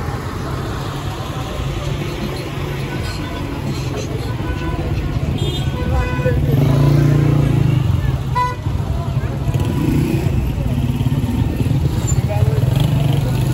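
Car engines idle and rumble close by in busy street traffic.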